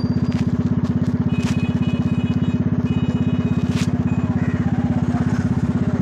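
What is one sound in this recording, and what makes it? A small engine chugs loudly and steadily close by.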